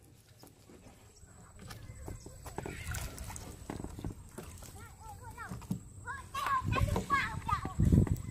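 A wet fishing net rustles and drags into a wooden boat.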